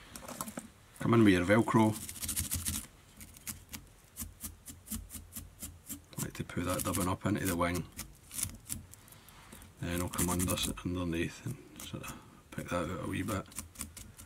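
A stiff brush scratches and rasps over fibres.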